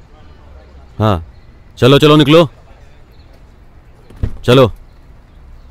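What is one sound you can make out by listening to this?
A man shouts loudly nearby.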